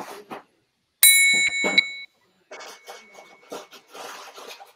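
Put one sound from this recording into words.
A metal triangle rings out once.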